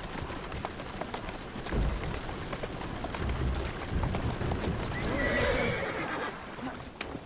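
Carriage wheels rattle over cobblestones.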